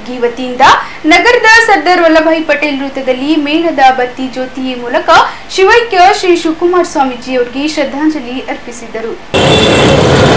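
A young woman reads out the news clearly into a microphone.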